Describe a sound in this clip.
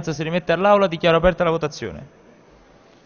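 A man speaks firmly through a microphone in a large echoing hall.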